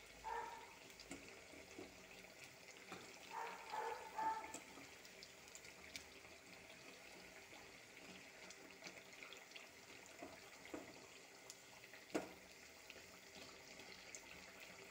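Oil sizzles and crackles steadily around frying food.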